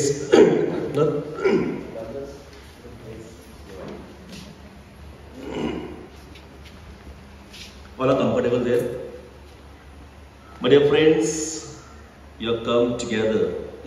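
A man speaks through a loudspeaker in an echoing hall.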